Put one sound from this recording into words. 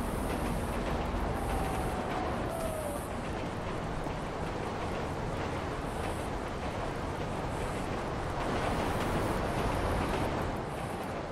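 Footsteps crunch on gravel.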